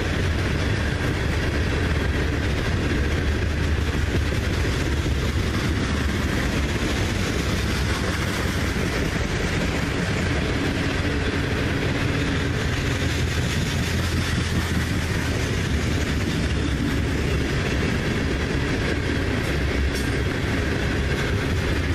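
A long freight train rumbles steadily past at close range.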